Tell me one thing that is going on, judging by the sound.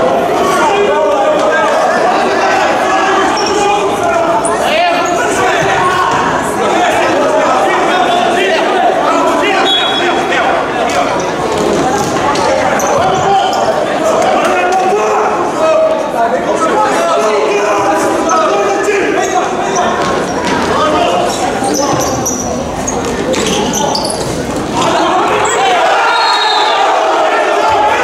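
Spectators cheer and chant loudly throughout, echoing in a large hall.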